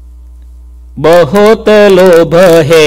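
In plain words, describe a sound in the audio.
A man sings a chant in a steady, melodic voice, close to a microphone.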